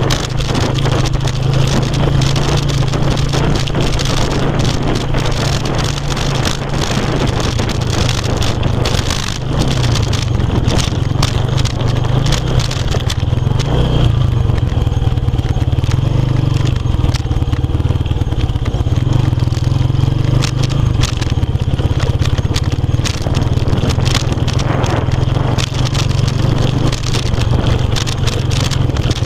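Tyres bump and rattle over a rutted dirt track.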